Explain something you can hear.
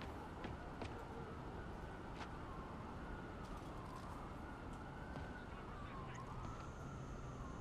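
A low city hum drones steadily outdoors.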